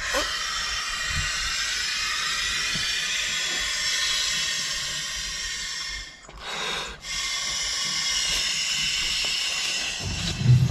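A man blows long, steady breaths into an inflatable bag.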